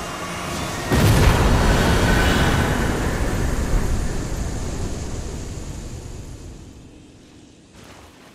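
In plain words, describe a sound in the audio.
A deep booming burst with a shimmering chime swells and then slowly fades.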